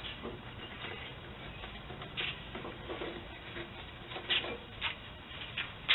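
Metal tongs clink and scrape against a grill's grate.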